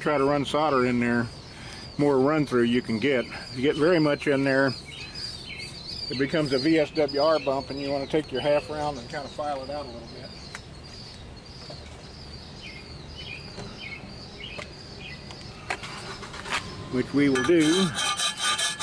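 A man speaks calmly close by, explaining.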